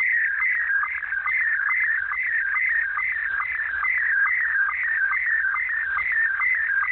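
A radio receiver plays a fast, repeating warbling tone through a loudspeaker.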